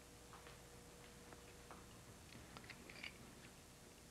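Glass and china clink softly on a table.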